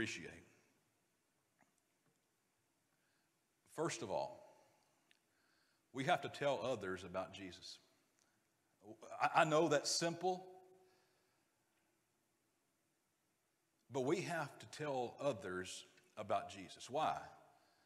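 A man speaks calmly through a microphone, pausing between phrases.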